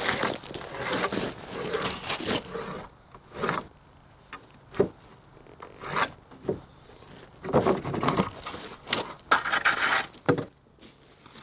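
A hammer knocks nails into wood with sharp blows.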